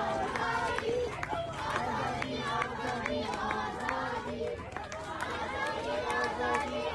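A crowd of men and women shout and chant close by.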